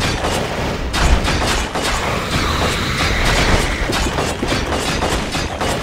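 Swords and blades clash rapidly in a game battle.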